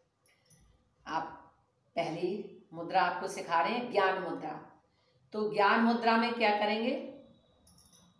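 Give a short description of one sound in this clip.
An older woman speaks calmly and clearly, close by.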